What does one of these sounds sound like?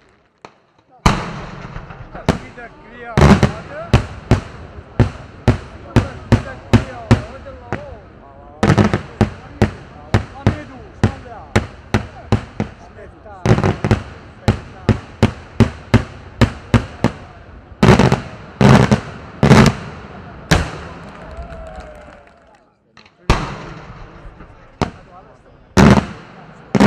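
Fireworks burst overhead in loud, rapid bangs that echo across open ground.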